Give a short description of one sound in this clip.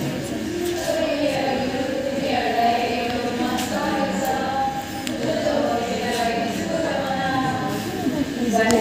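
A young woman speaks cheerfully through loudspeakers, echoing in a large room.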